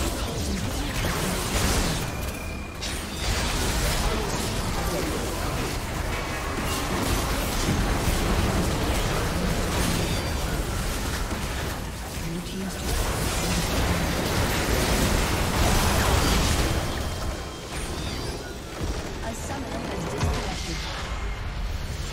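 Game spells crackle and whoosh.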